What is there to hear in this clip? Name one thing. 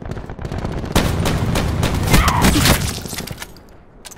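Gunshots fire in a quick, loud burst.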